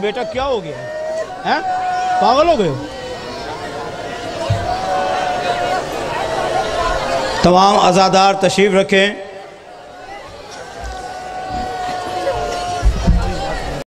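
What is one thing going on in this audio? A man chants a mournful lament through a loudspeaker.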